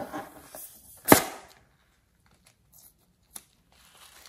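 Scissors snip through a rubber balloon.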